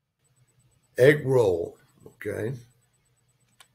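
An elderly man speaks briefly and calmly into a nearby microphone.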